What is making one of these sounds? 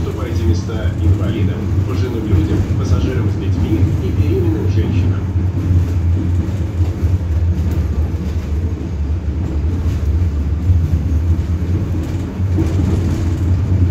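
A tram's motor hums low and steady as the tram rolls along.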